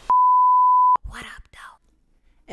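A young woman cries out close to a microphone.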